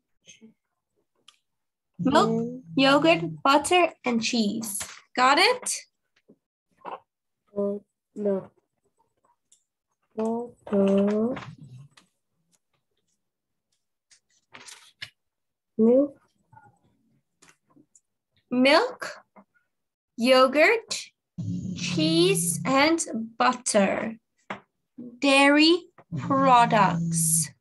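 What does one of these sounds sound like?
A child repeats words over an online call.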